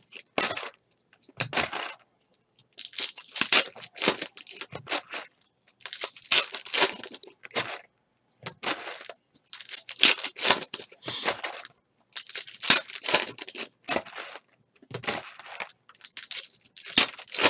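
A foil trading card pack crinkles as it is torn open.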